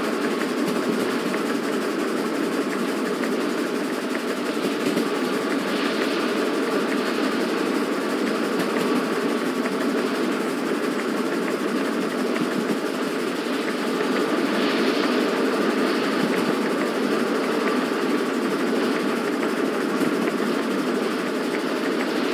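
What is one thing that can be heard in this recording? Train wheels rattle and clatter over the rails.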